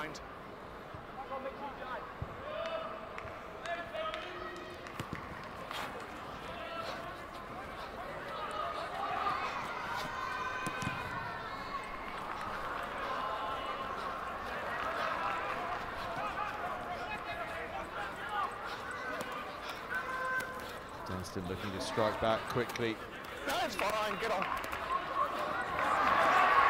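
Men shout to one another across an open sports field.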